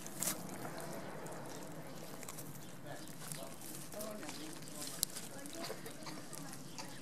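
Hands squelch and tear through wet meat and fat.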